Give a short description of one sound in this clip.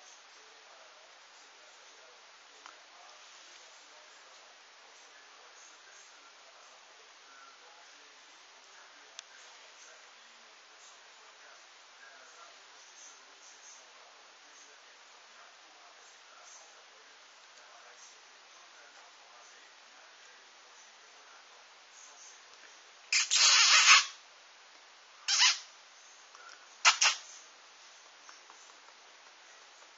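Puppies scuffle softly on a cushioned bed.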